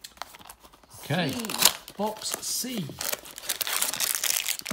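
A cardboard box is torn open.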